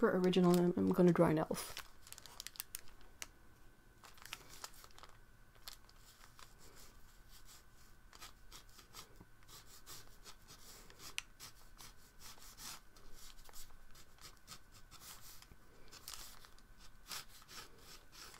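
A pencil scratches lightly across paper.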